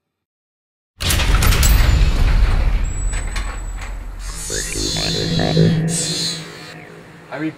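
A garage door rattles and rumbles as it rolls open.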